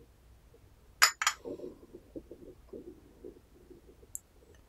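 A ceramic cup clinks as it is set down.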